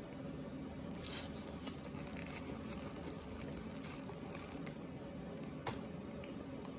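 A woman chews crunchy starch with her mouth closed.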